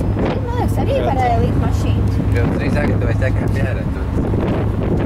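A woman speaks close to the microphone over the wind.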